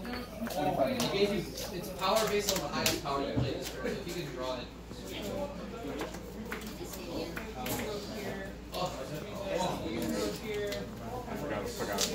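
Playing cards slide and tap on a tabletop.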